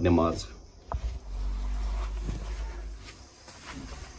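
A rug rustles as it is unfolded and laid down.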